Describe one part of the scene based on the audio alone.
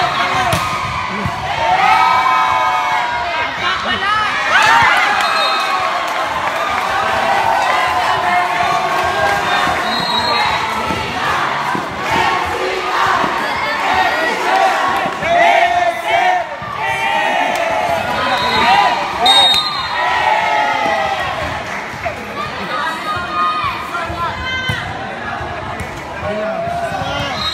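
Young men shout to each other during play.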